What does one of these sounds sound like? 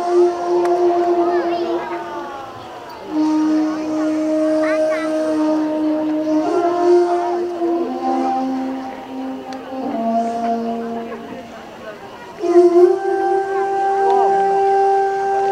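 Slow music with long held notes plays over loudspeakers outdoors.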